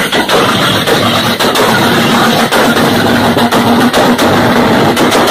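A car engine idles loudly with a deep, throaty exhaust rumble.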